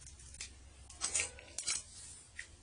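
Paper rustles and crackles as it is handled.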